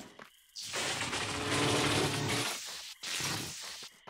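Electricity crackles and buzzes in sharp bursts.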